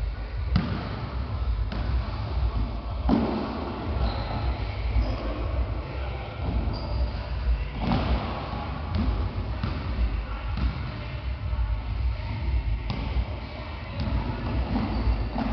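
Sneakers squeak and thud on the wooden floor.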